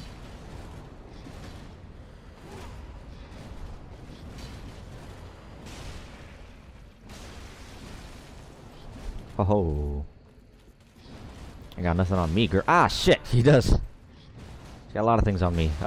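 Swords swing and clash in a fight.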